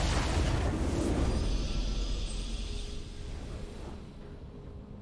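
A triumphant game fanfare bursts out and slowly fades away.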